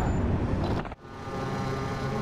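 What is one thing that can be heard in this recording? A racing car engine hums.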